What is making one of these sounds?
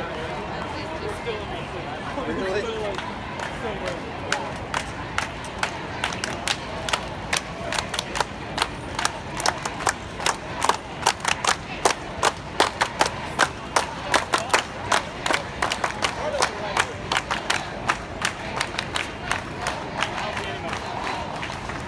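A crowd of men and women chants and talks outdoors.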